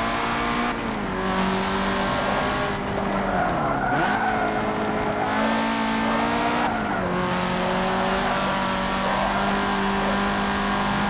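A car engine revs hard, its pitch dropping and climbing with gear shifts.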